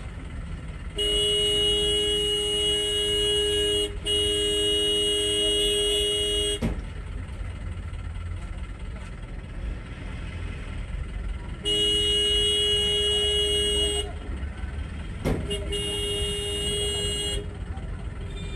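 Vehicle horns blare in long, loud blasts.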